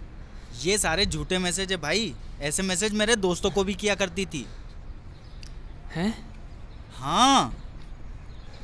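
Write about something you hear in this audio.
A young man talks loudly with animation close by.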